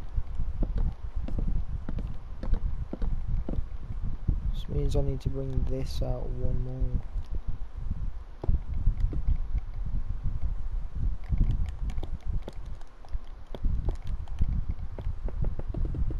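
Blocks break and get placed with soft crunching taps.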